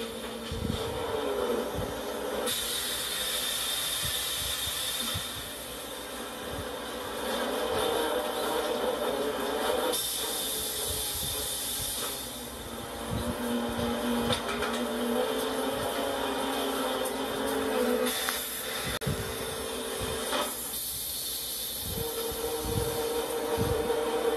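A log conveyor clanks and rattles as logs roll along it.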